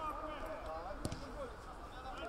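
A football is kicked hard with a thump.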